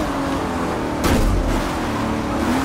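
Racing cars bump and scrape against each other.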